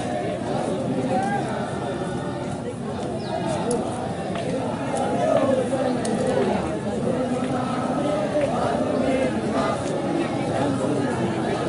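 A large crowd of men chants together outdoors.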